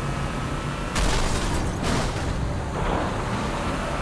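A vehicle crashes with loud bangs and scraping.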